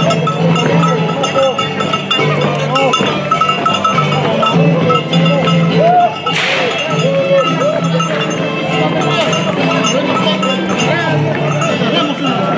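A brass band plays a lively, steady tune nearby.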